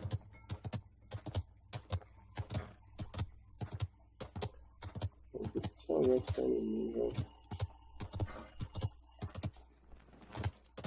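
A horse's hooves clop quickly and steadily on the ground.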